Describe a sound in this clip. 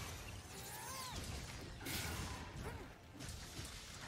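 Swords clash and slash with sharp metallic hits.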